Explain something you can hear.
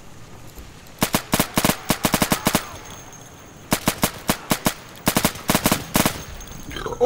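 Soft menu clicks tick in quick bursts.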